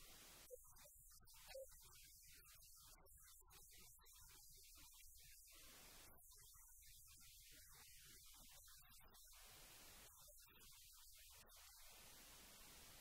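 A man speaks slowly and solemnly through a microphone.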